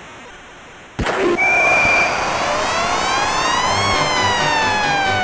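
An electronic game crowd cheers loudly after a goal.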